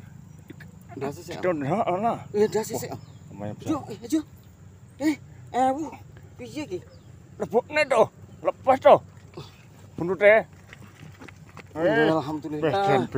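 An older man talks close by.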